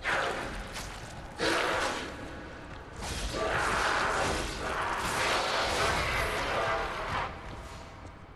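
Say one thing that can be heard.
A large creature snarls and roars loudly.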